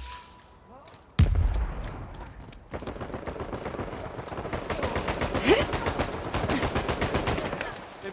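Quick footsteps run over stone.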